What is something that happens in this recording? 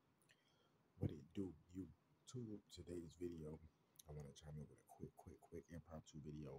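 A man speaks calmly, close to a phone microphone.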